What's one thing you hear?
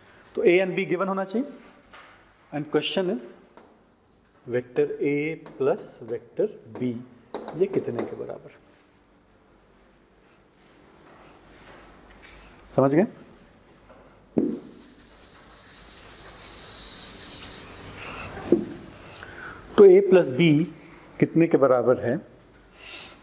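A man lectures calmly through a clip-on microphone.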